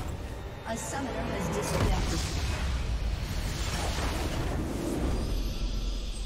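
Magic blasts crackle and boom in a video game.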